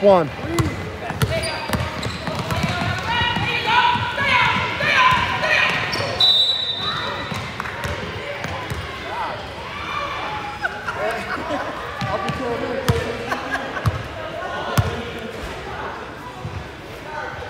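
A basketball bounces on a hard floor, echoing in a large gym.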